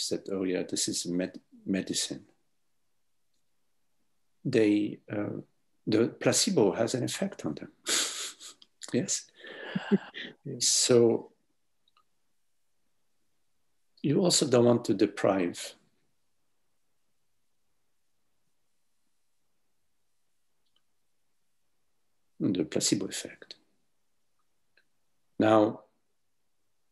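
An older man speaks calmly over an online call, with long pauses.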